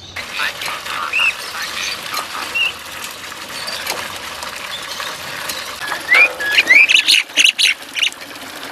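Small birds chirp.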